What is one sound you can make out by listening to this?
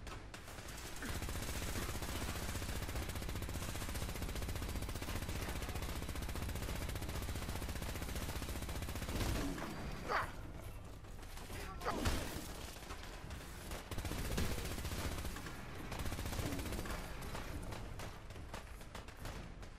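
A rapid-fire energy weapon buzzes and crackles as it fires in bursts.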